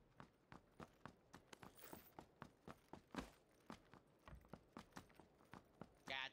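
Quick footsteps run steadily over a hard floor.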